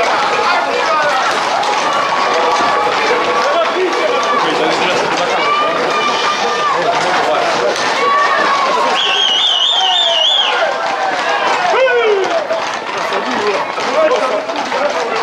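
A crowd of young men shouts and whoops outdoors.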